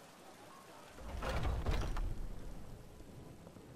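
A heavy wooden door creaks open with a low rumble.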